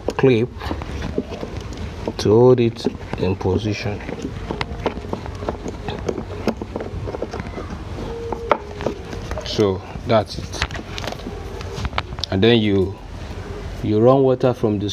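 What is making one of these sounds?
A young man talks calmly close by.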